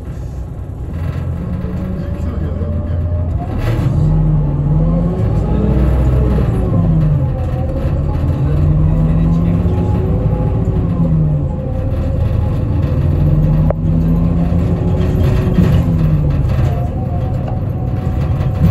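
An electric train motor whines, its pitch rising and falling as the train pulls away and rolls along.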